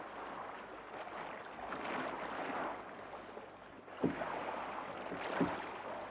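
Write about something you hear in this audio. Small waves wash onto a shore.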